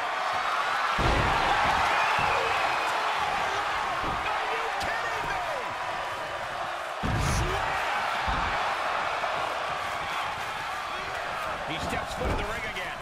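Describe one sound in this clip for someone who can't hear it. Heavy thuds of bodies slamming onto a wrestling ring mat.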